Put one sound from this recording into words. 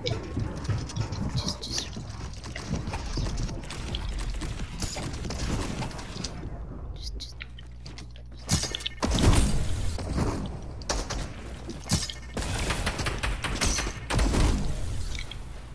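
Footsteps patter quickly in a video game.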